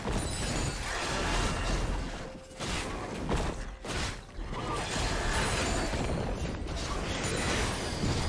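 Magic spells burst and crackle in a fast fight.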